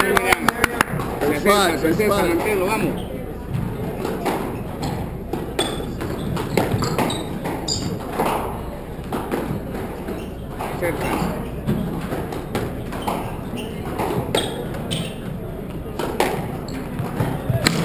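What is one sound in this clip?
A squash ball smacks sharply off rackets and walls in a large echoing court.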